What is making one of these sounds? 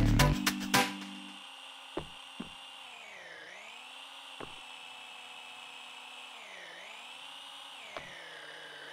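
A small electric cart motor hums steadily, briefly dipping in pitch now and then.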